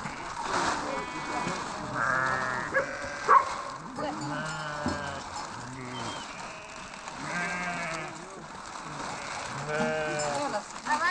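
Sheep bleat nearby.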